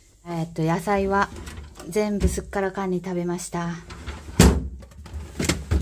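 A plastic drawer slides and clatters.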